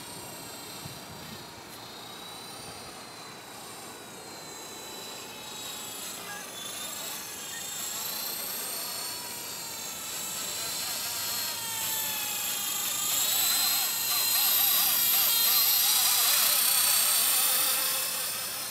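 A model helicopter's motor whines high overhead, its pitch wavering and growing louder as it comes closer.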